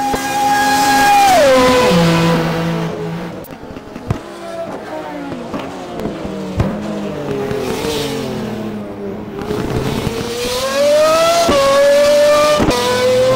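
A race car engine roars loudly, its pitch dropping as it shifts gears and rising again as it speeds up.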